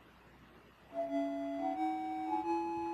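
A short electronic beeping tune begins to play.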